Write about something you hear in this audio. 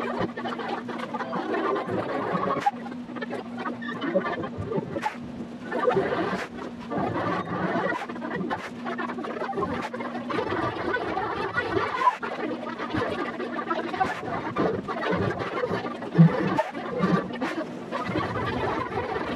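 Young children sing together in a large hall.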